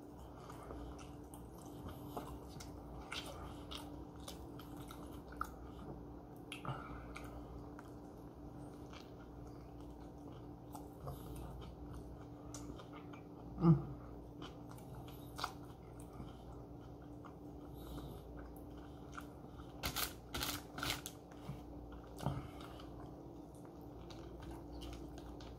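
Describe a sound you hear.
A young man chews food with his mouth close by.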